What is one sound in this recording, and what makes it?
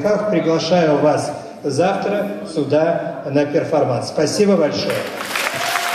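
A middle-aged man speaks into a microphone, amplified in a hall.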